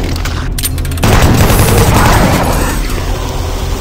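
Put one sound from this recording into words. A heavy gun fires a loud, rapid burst.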